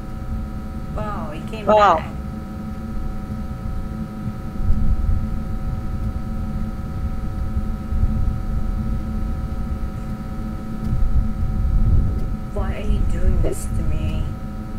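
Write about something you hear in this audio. A young woman speaks briefly into a close microphone.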